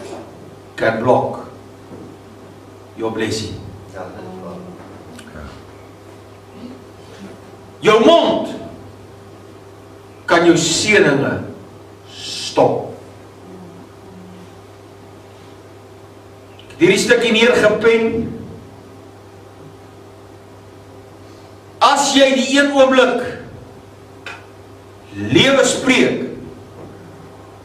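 An elderly man speaks emphatically through a microphone in bursts, with long pauses, in an echoing room.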